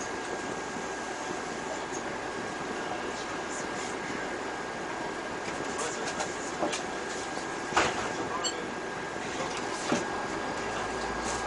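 A diesel bus engine idles.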